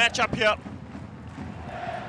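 A large crowd cheers and chants in a stadium.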